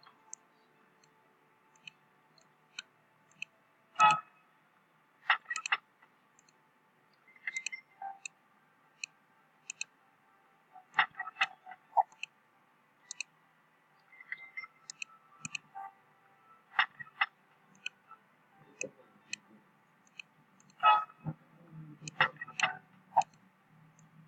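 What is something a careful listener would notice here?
Short electronic chimes and pops sound now and then as menus open and close.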